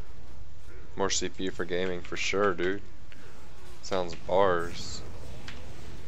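A young man speaks briefly with animation, close to a microphone.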